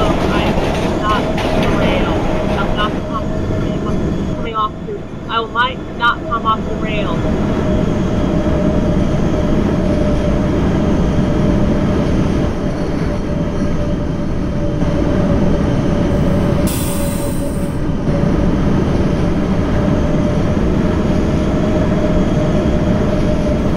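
A subway train rumbles steadily along the tracks with a constant motor hum.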